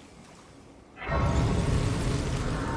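A bright magical chime swells and rings out.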